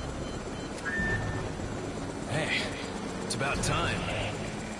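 A helicopter hovers overhead with a low, steady thudding drone.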